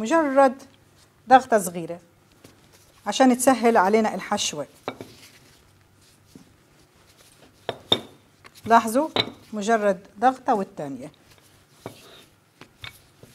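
A rolling pin rolls over dough on a wooden board.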